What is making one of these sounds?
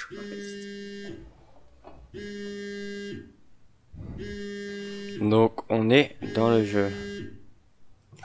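A phone rings in short repeated bursts.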